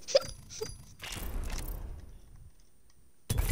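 A game menu plays a short whooshing transition sound.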